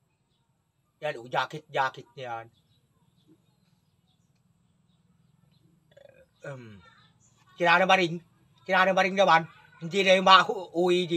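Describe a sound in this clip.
A middle-aged man speaks calmly and close by, in short phrases with pauses.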